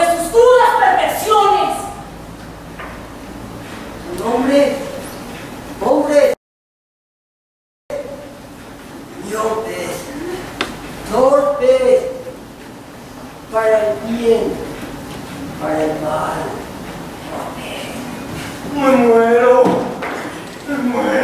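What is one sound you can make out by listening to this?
Actors speak their lines with feeling, heard from a distance in a large echoing hall.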